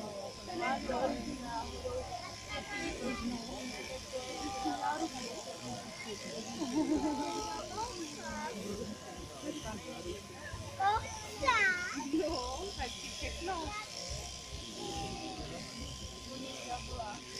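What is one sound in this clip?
Electric sheep shears buzz steadily.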